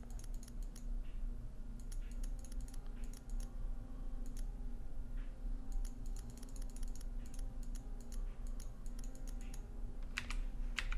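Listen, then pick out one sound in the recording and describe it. A combination lock's dial clicks as it turns, in short bursts of light ticks.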